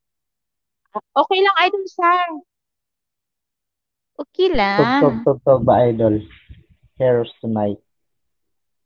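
A young woman talks into a close microphone.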